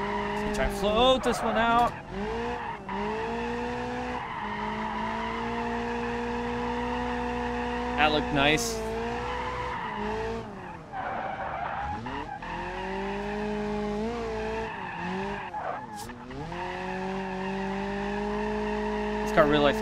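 A car engine revs hard, rising and falling as the car drifts.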